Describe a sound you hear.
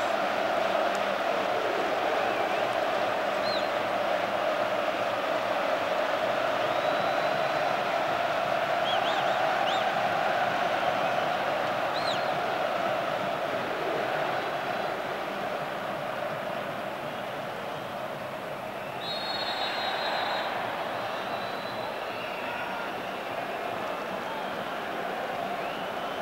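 A large stadium crowd roars and chants steadily outdoors.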